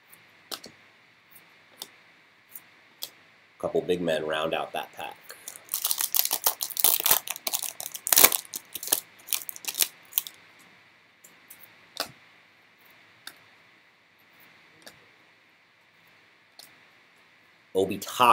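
Trading cards tap and slide against each other.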